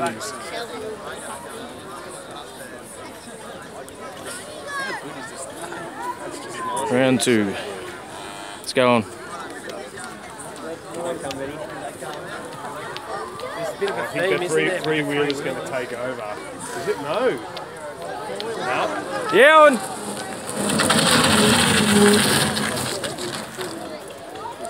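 A crowd of spectators chatters outdoors nearby.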